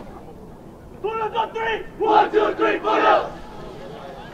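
A group of young players shouts a loud cheer together.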